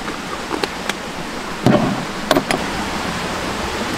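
Pieces of firewood knock together.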